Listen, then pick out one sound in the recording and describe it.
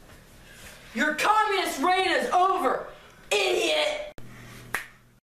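A teenage boy shouts excitedly nearby.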